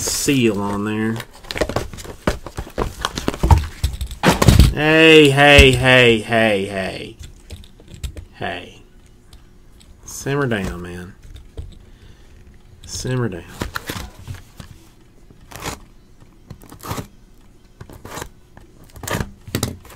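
Small cardboard boxes knock and rustle as they are handled close by.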